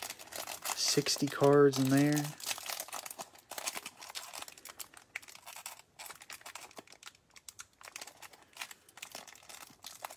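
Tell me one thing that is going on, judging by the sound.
Plastic wrap crinkles as it is peeled off a stack of cards.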